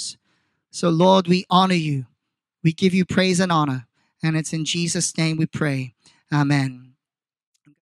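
A man speaks calmly into a microphone through a loudspeaker outdoors.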